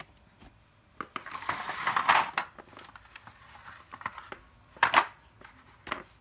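Plastic battery chargers clatter and scrape across a hard floor.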